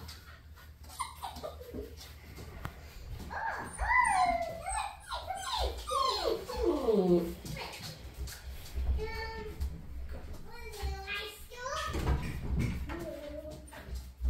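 Puppies' paws patter and scrabble on a hard floor.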